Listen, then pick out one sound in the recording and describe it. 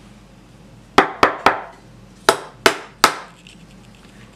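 Plastic toy blocks click and knock together.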